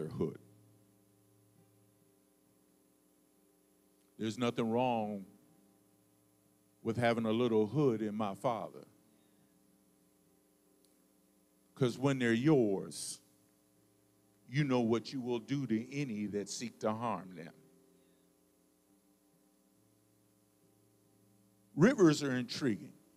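A man speaks into a microphone in bursts with pauses, heard through loudspeakers.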